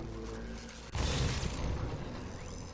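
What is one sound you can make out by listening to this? An electric bolt zaps with a sharp crackle.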